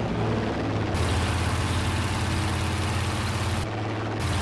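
Wind rushes loudly past a plane's cockpit.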